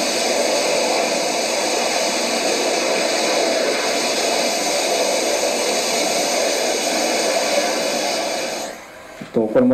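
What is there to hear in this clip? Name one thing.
A rocket engine roars steadily through a loudspeaker.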